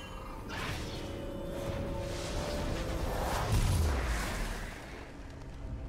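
A magical spell hums and whooshes, then fades away.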